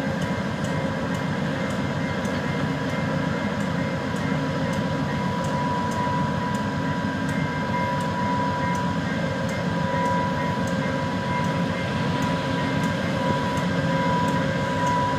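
A diesel locomotive rumbles steadily as it approaches slowly.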